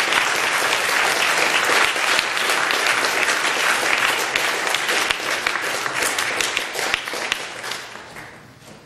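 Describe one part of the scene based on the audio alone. A trumpet plays loudly in a reverberant hall.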